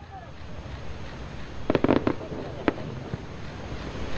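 Fireworks crackle and fizzle as sparks fall.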